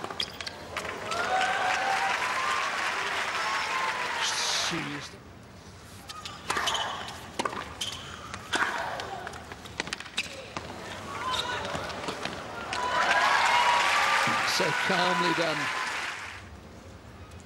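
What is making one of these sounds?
A crowd cheers and applauds loudly in a large arena.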